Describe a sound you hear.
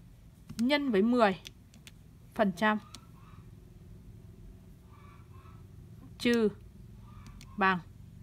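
Calculator keys click softly as they are pressed.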